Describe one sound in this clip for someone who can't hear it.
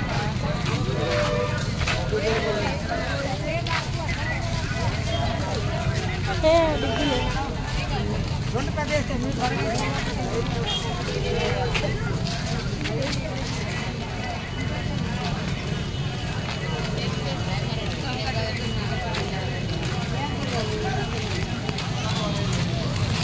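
Footsteps shuffle on a dusty road.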